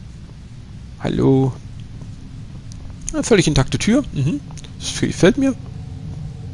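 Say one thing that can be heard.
A young man talks with animation into a microphone close by.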